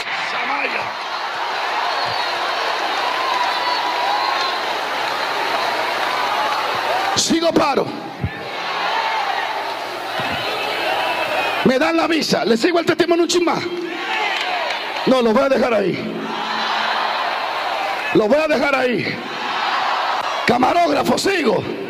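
A man preaches loudly and with fervour through a microphone in a large echoing hall.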